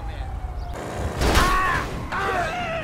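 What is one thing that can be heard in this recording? A car crashes into another car.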